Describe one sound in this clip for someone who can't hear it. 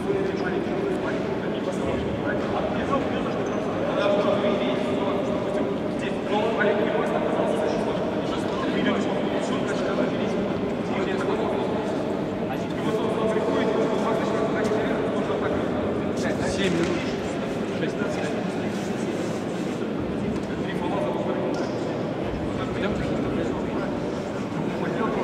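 A man speaks with animation, his voice echoing in a large hall.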